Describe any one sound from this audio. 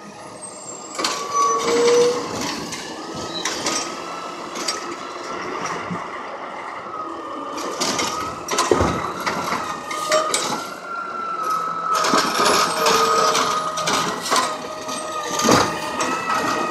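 A garbage truck's hydraulic arm whines as it lifts a bin.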